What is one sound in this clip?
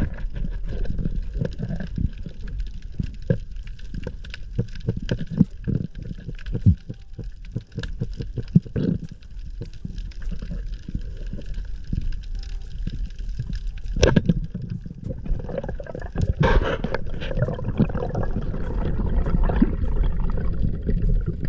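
Clicks and crackles sound through the water.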